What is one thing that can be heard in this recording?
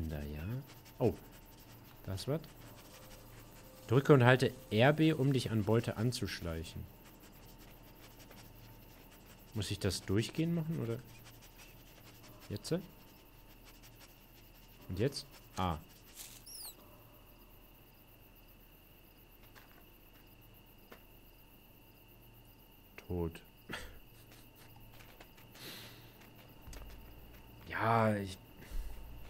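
A young man talks in short bursts, close to a microphone.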